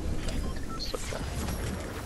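A metal tool clangs against a machine.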